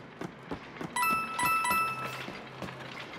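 Coins chime as they are collected.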